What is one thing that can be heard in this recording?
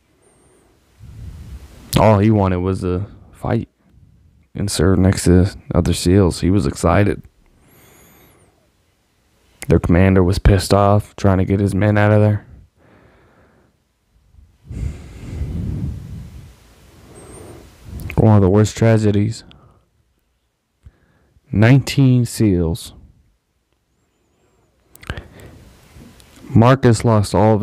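A man speaks calmly and close into a microphone, in short bursts with pauses.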